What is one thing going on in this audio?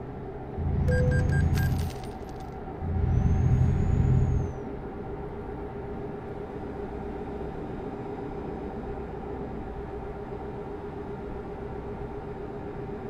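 Tyres roll over a snowy road.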